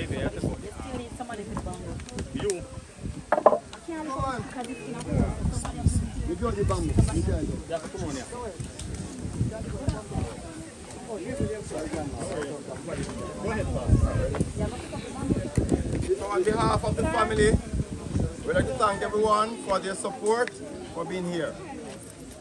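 An elderly man speaks loudly to a gathering outdoors.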